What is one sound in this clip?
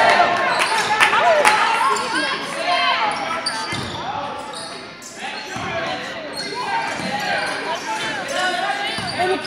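A crowd of spectators murmurs and calls out in an echoing hall.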